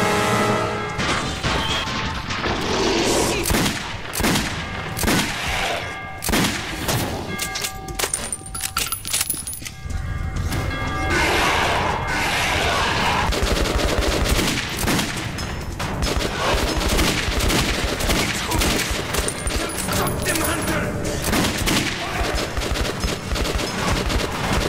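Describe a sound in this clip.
Pistol shots ring out rapidly, echoing off hard walls.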